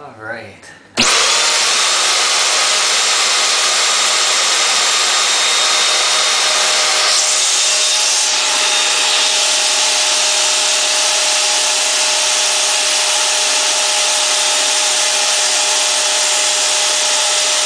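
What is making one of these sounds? A vacuum cleaner motor switches on and roars steadily.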